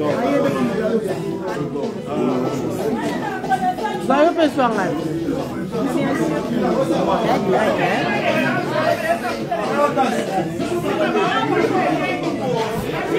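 Many people chatter at once in a busy, crowded room.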